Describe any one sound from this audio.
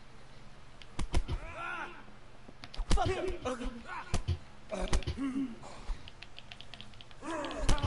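Fists thump against bodies in a brawl.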